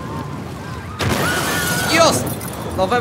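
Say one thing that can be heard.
A car explodes with a loud roaring blast.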